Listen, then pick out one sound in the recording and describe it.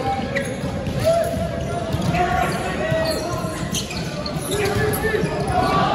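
Men call out to each other across a large echoing hall.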